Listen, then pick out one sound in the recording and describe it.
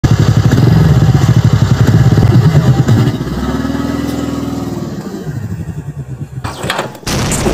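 A scooter engine idles and revs up close.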